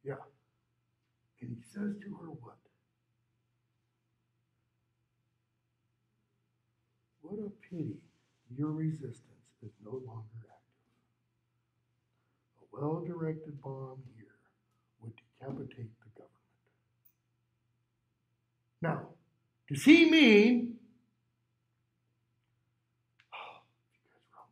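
A man talks calmly close by, with long pauses.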